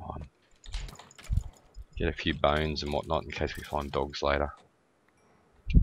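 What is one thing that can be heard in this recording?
A sword strikes a creature with dull thuds.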